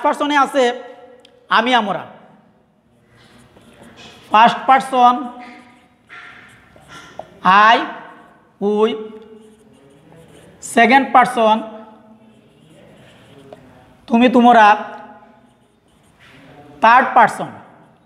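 A middle-aged man speaks clearly and steadily in short phrases, as if explaining to a class.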